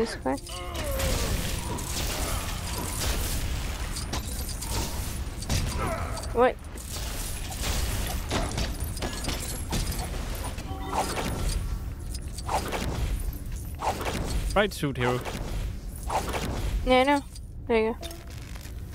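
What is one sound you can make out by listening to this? Video game sound effects of zaps, blasts and chiming pickups ring out.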